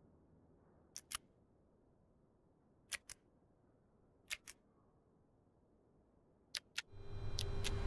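Switches click sharply, one at a time.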